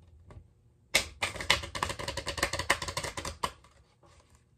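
Playing cards shuffle with a rapid fluttering riffle.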